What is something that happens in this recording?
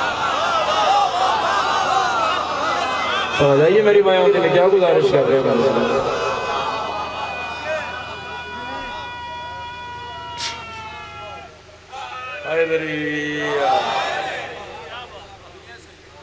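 A young man speaks and chants with feeling through a microphone and loudspeakers, holding long drawn-out notes.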